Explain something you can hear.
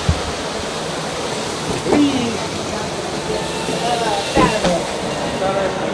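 A revolving door swishes as it turns.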